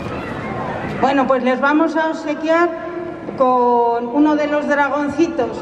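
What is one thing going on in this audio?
A woman sings on stage, heard from a distance.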